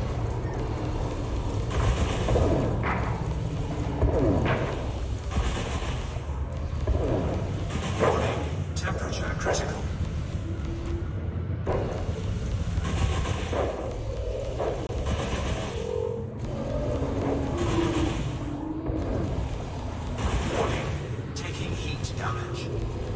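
Laser blasts fire in quick bursts.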